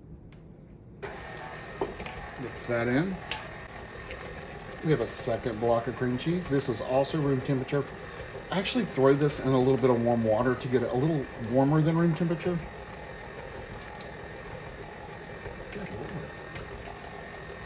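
A stand mixer whirs steadily.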